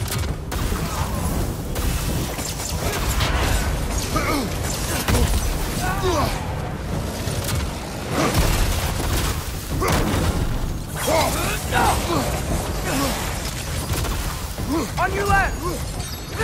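Magic blasts crackle and boom.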